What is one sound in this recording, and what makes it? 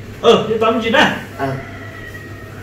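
A young man speaks briefly and firmly up close.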